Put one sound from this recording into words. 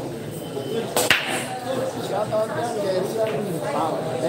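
Pool balls clack against each other and roll across the table.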